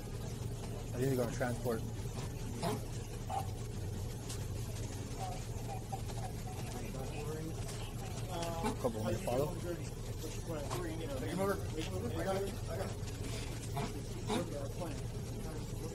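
Several men and women talk nearby in a crowd.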